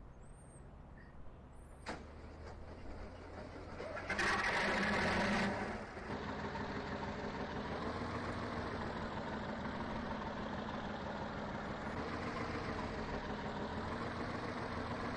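A heavy tractor engine rumbles and revs, growing louder.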